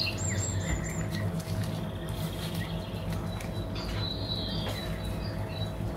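Hands knead soft dough in a metal bowl.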